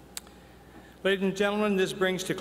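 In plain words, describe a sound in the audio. A man speaks calmly over a loudspeaker in a large echoing hall.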